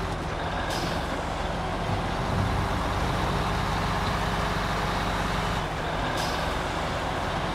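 A heavy truck engine rumbles steadily as the truck drives along a road.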